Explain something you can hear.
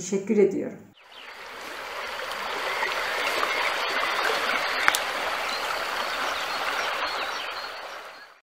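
Ocean waves wash steadily over rocks.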